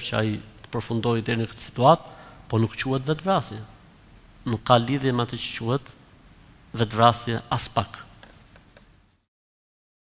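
A middle-aged man speaks calmly with animation into a close microphone.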